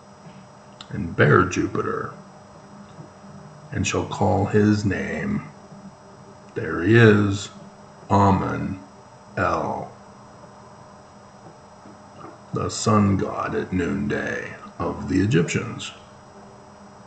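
A middle-aged man speaks calmly and slowly in short phrases, close to a microphone.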